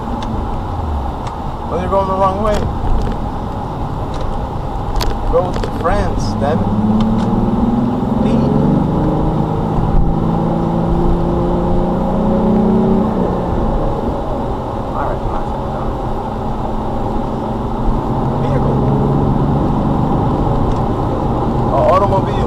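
Tyres roll on a road with a steady rush.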